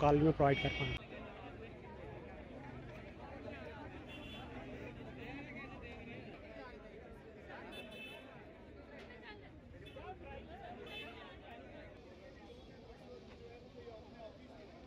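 A crowd of young men murmurs and chatters outdoors.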